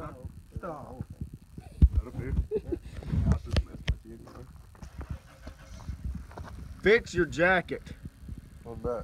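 A young man talks and laughs close by.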